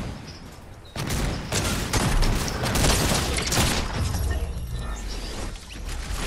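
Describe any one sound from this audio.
Game gunfire bursts in rapid shots.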